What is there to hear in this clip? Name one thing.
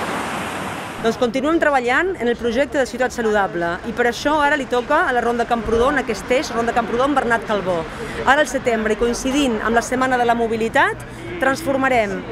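A middle-aged woman speaks calmly and clearly, close by.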